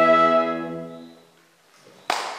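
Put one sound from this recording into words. A small ensemble of instruments holds a final chord that fades away in an echoing hall.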